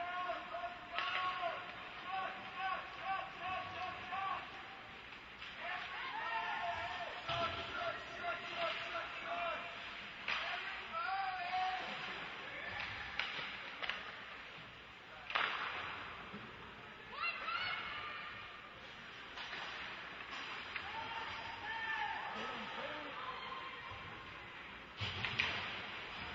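A puck cracks against sticks and the boards now and then.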